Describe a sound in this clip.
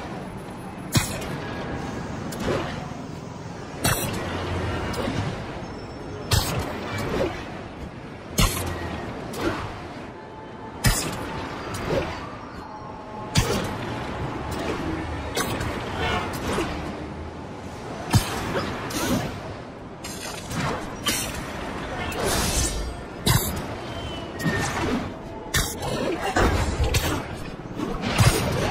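Web lines snap and thwip sharply again and again.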